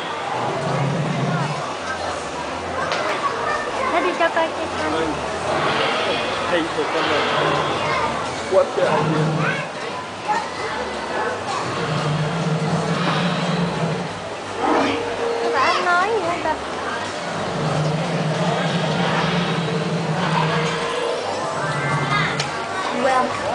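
A deep recorded voice speaks slowly through a loudspeaker.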